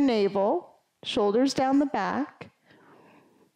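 A woman speaks calmly and clearly.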